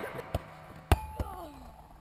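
A football thuds into a goal net.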